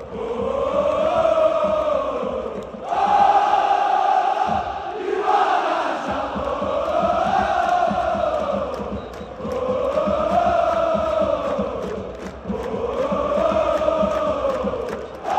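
A huge stadium crowd chants loudly in unison, echoing in the open air.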